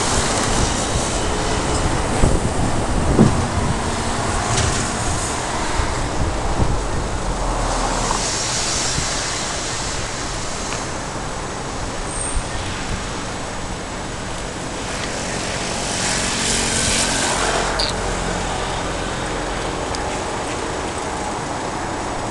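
Traffic hums steadily on a distant city road.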